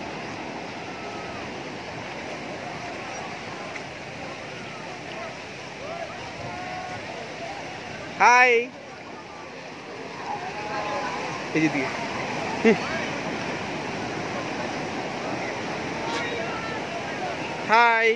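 Small bare feet splash through shallow water.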